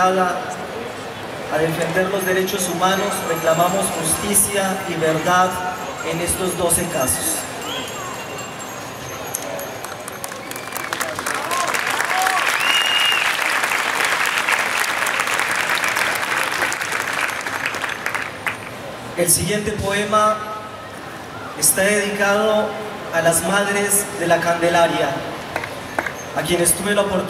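A man recites with strong emotion through a microphone and loudspeakers.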